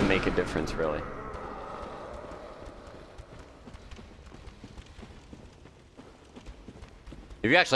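Footsteps crunch softly on a stone floor.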